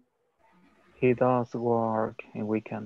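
A young man speaks through an online call.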